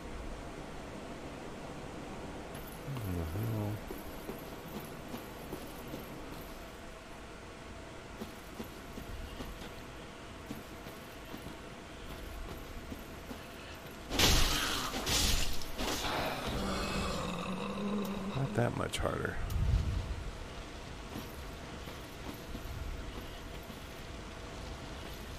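Footsteps patter on stone floors.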